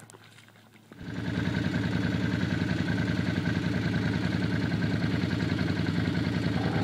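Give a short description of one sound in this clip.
A motorbike engine drones steadily in the distance outdoors.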